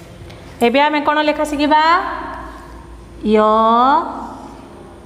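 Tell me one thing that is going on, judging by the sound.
A woman speaks slowly and clearly, as if teaching.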